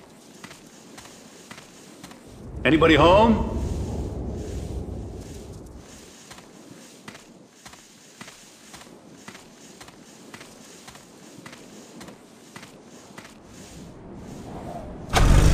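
Footsteps tread steadily on a hard surface.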